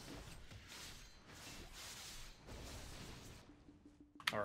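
Magic blasts and sword swings whoosh in quick bursts.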